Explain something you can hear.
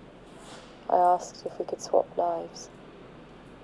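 A woman speaks softly and warmly, close by.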